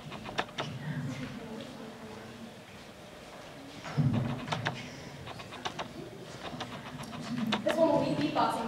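A young woman speaks into a microphone on a stage.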